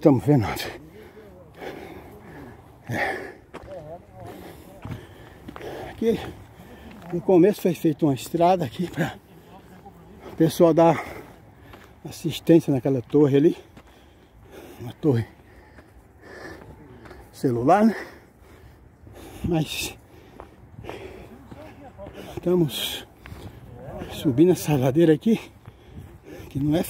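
A man talks close by in bursts, outdoors.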